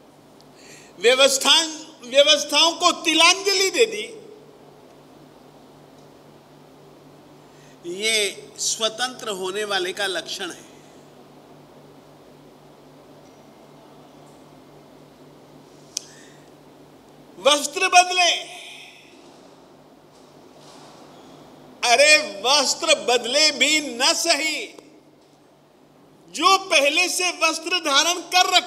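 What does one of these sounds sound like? An elderly man speaks with animation into a close microphone, in bursts with pauses between them.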